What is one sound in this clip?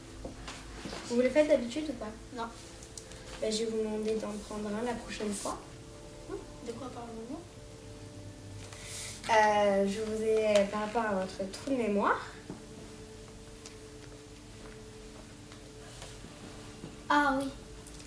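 A young girl speaks calmly nearby.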